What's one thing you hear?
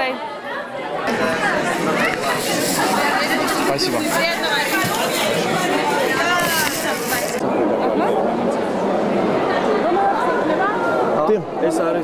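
A crowd of people chatters in a busy room.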